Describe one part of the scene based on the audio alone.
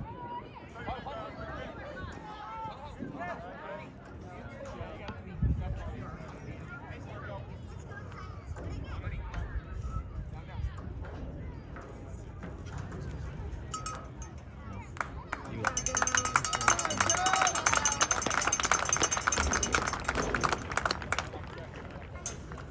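A crowd of spectators chatters outdoors.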